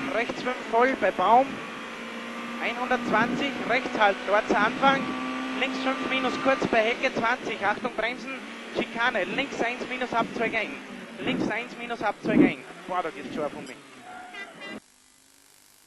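A racing car engine drones and revs from inside the car.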